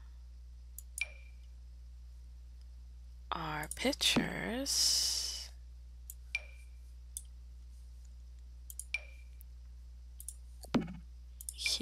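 Short soft clicks and chimes sound now and then as objects are placed.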